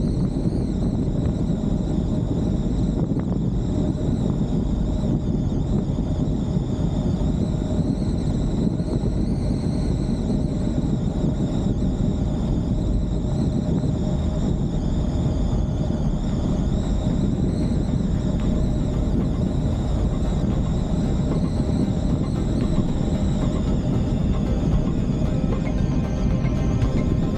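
Wind rushes past the car loudly.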